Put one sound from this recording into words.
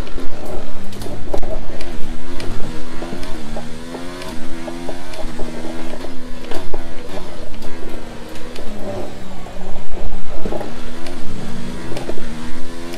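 A racing car engine roars at high revs, rising and falling as it shifts gears and brakes.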